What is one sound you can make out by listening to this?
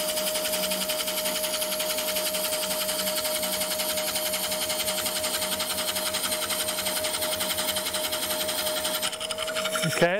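A chisel scrapes and chatters against spinning wood.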